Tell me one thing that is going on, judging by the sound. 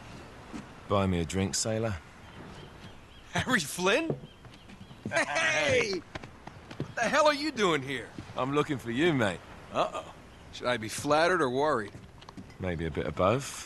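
A young man speaks casually and warmly.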